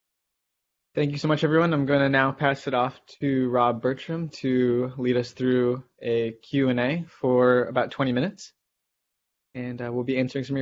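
A second man speaks calmly over an online call.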